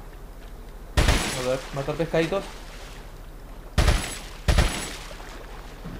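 A pistol fires loud single shots that ring out with an echo.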